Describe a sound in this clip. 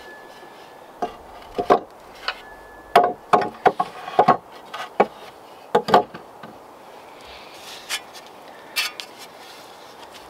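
A blade knocks and scrapes against wood.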